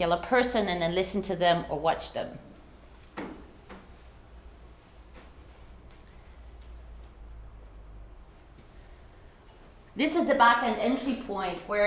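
A woman speaks calmly through a microphone in a room with slight echo.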